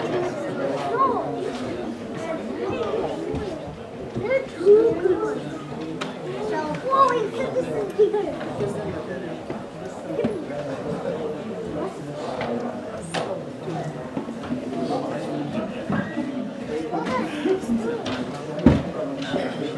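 An elderly man speaks into a microphone, heard over loudspeakers in an echoing room.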